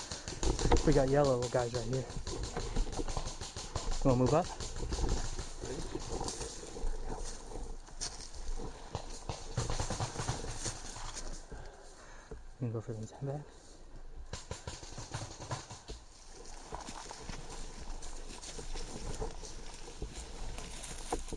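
Leaves and grass rustle close by as someone moves through dense undergrowth.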